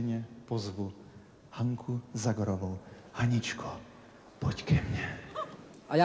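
A man speaks cheerfully into a microphone in a large hall.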